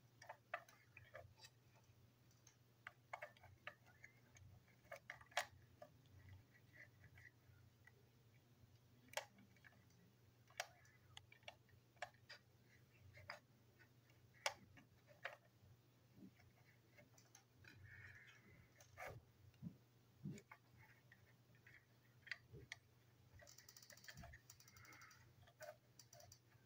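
Fingers click and tap small plastic parts of a toy train engine.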